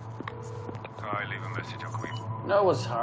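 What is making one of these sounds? A young woman speaks quietly into a phone.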